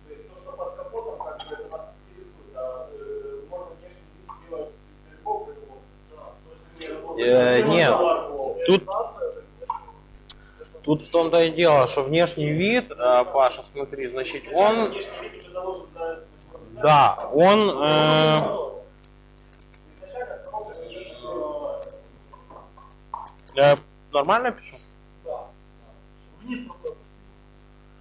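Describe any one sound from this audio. A man speaks calmly and with some animation.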